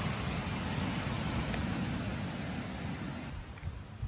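A thick sauce splatters onto fish.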